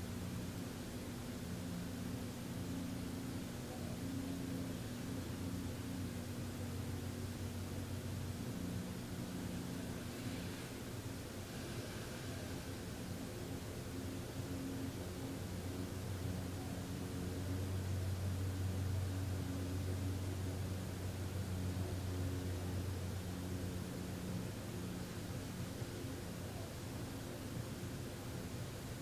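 A man hums a low, steady tone in long held notes.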